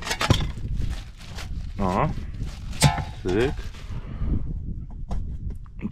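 A plastic licence plate rattles and clicks into place.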